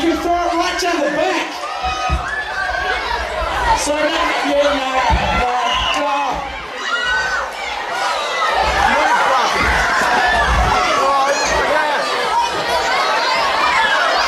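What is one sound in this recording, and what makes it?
A large crowd of young people cheers and screams loudly in an echoing hall.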